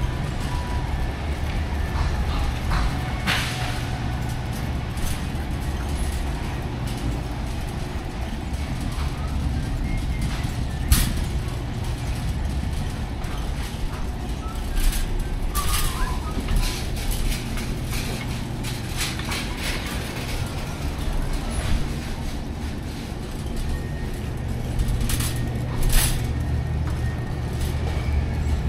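A low hum of refrigeration fills a large hall.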